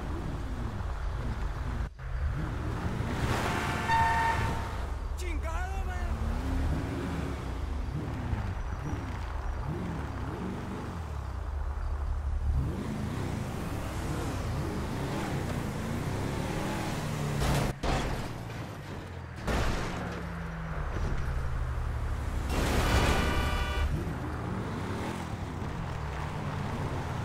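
A car engine roars steadily as it drives fast along a road.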